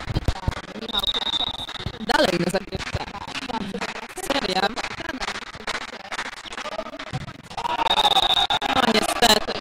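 Players' shoes squeak sharply on a hard court in a large echoing hall.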